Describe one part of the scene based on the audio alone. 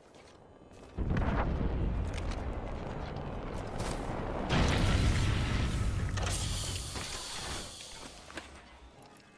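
A falling supply capsule roars loudly as it comes down and lands.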